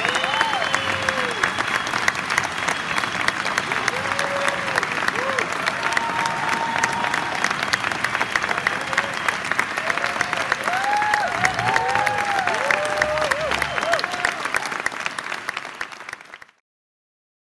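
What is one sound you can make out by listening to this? An audience claps loudly in a hall.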